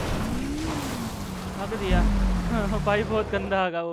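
Water splashes and sprays.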